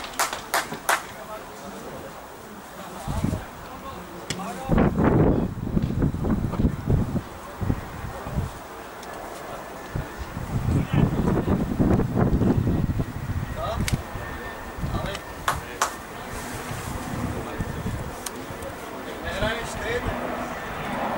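Young men call out to each other across an open field, heard from a distance.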